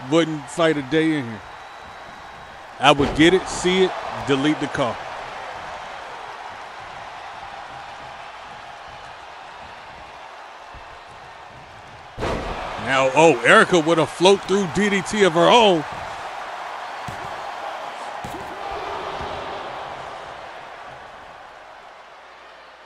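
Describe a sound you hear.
A crowd cheers and murmurs steadily.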